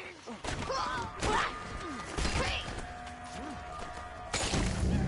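A man grunts and shouts while fighting.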